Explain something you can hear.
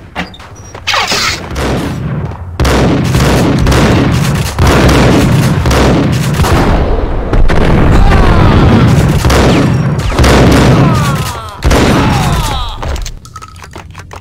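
A shotgun fires loud blasts that echo.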